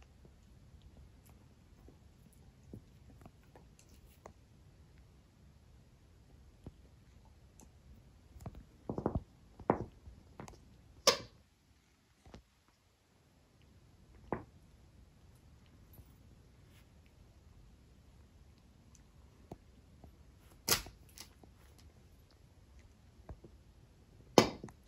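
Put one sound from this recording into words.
A dog chews and tugs at a plush toy.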